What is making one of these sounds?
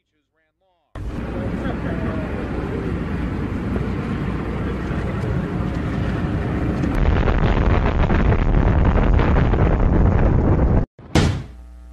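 A building collapses with a deep, roaring rumble of falling concrete.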